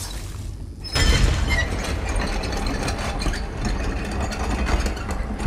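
A metal crank wheel turns with a heavy grinding rumble.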